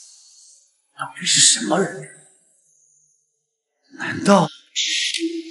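An older man speaks in a low, grim voice.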